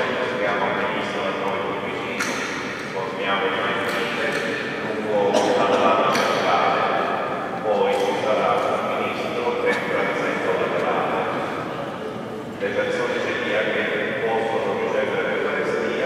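A man chants slowly through a microphone in a large echoing hall.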